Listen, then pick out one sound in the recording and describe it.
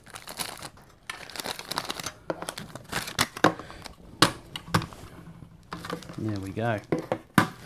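Plastic packaging rustles and crinkles in a man's hands.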